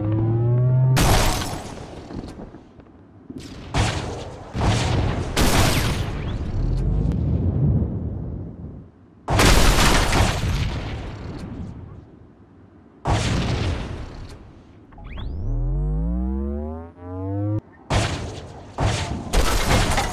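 Loud explosions boom repeatedly.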